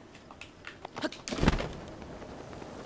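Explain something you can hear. A glider cloth flaps open with a whoosh.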